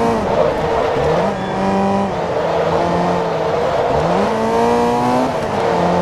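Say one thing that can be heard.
Tyres squeal through the bends.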